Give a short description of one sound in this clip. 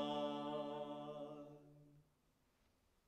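A woman sings a long held note that fades away.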